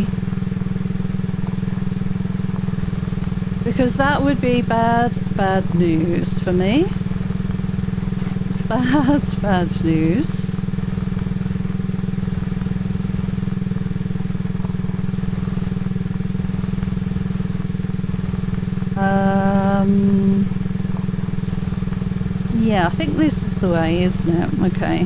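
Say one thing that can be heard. A quad bike engine drones steadily as it drives over rough ground.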